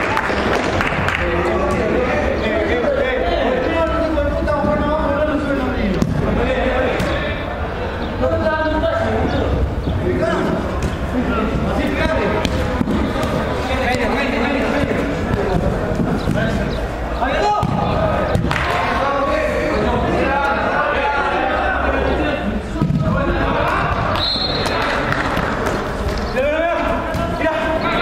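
Young men shout and call out to each other in an echoing indoor hall.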